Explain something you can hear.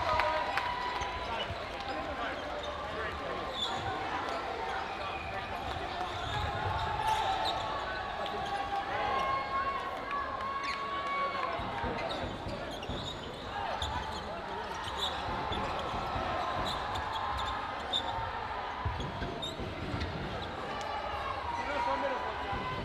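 Balls thud on the floor.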